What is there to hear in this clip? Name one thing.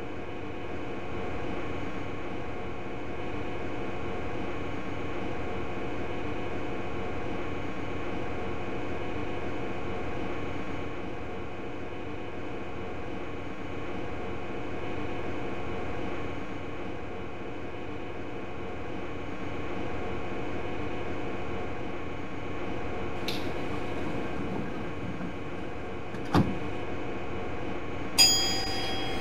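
An electric train hums steadily while standing still.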